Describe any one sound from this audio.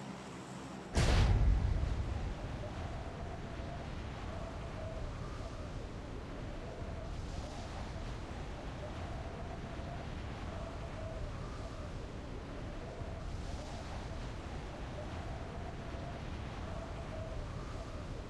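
Wind rushes loudly and steadily past a falling skydiver.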